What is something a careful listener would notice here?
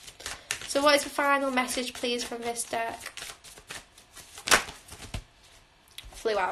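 Playing cards riffle and flick as they are shuffled.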